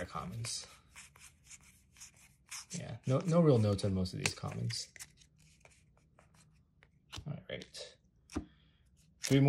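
Playing cards slide and flick against one another.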